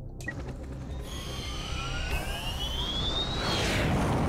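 A spaceship engine whines, rising in pitch as it takes off.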